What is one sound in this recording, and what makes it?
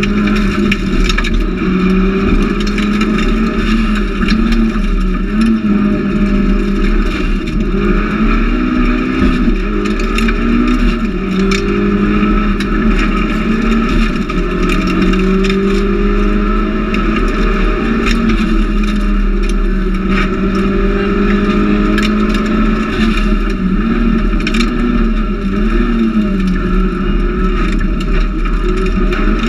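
A man reads out pace notes through a helmet intercom.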